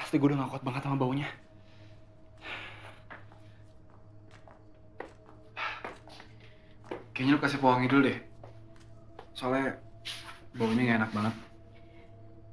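A young man speaks quietly and intimately, close by.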